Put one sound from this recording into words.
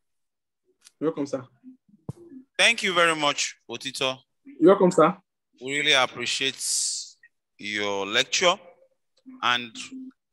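A young man speaks calmly and close, as if over an online call.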